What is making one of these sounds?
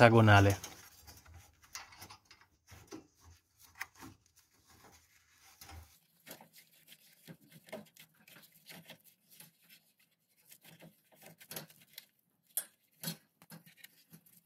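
A metal tool scrapes and taps against metal.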